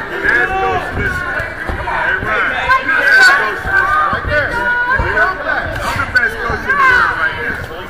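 Boxing gloves thud against bodies.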